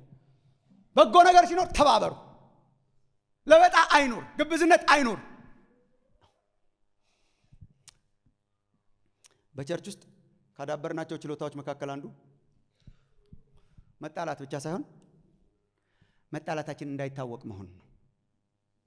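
A middle-aged man speaks with emotion into a microphone, in bursts with pauses, over loudspeakers.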